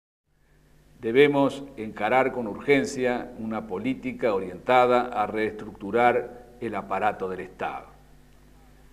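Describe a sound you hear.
A middle-aged man speaks calmly and formally into a microphone.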